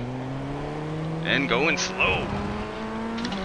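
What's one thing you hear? Other race car engines whine nearby.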